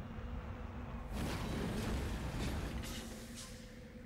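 A heavy vehicle lands hard with a thud.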